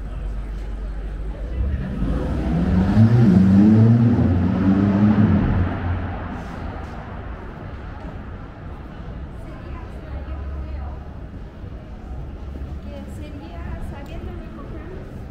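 A low city hum goes on steadily outdoors.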